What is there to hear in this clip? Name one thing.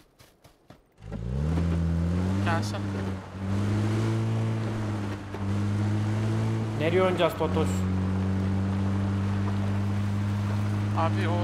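A vehicle engine starts and revs up and down as it drives.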